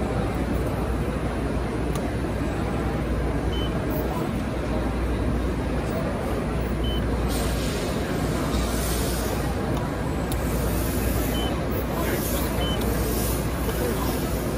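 A press brake hums steadily.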